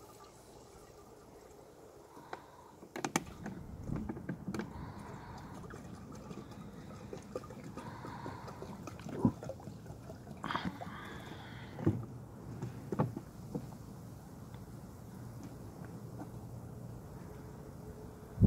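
Water trickles and splashes.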